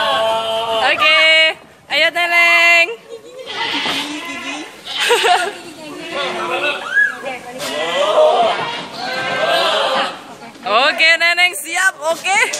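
Goats bleat loudly and repeatedly.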